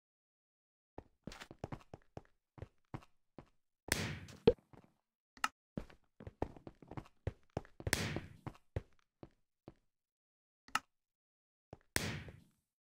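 Game fireworks pop and crackle.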